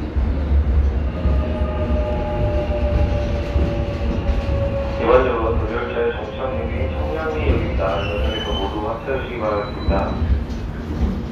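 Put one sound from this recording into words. Train brakes whine as the train slows down.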